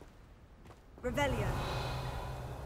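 A magic spell whooshes and rings out with a warbling tone.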